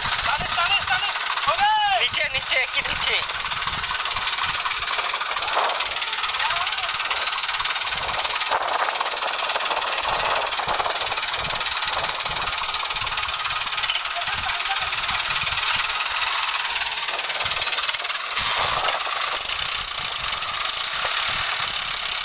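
A tractor engine chugs loudly nearby.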